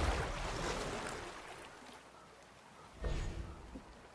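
Oars splash in the water.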